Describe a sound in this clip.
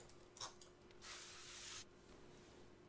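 A spray can hisses briefly.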